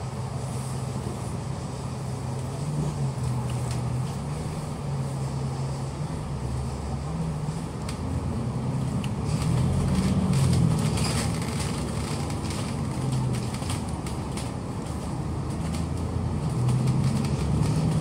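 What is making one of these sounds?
A vehicle's engine hums low and steadily as it drives along, rising and falling in pitch.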